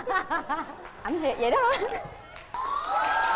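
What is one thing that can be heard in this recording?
A young woman answers playfully into a microphone.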